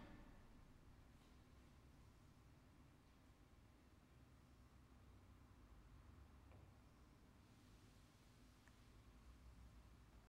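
A low, quiet electronic drone hums steadily through an amplifier.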